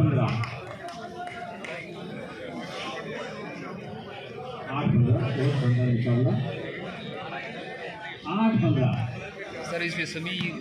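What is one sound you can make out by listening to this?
A crowd of spectators murmurs and chatters outdoors.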